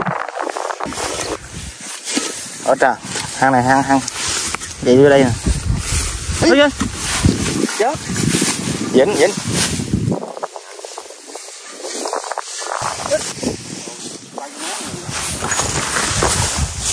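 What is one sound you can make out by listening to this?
Dry grass rustles and crunches underfoot.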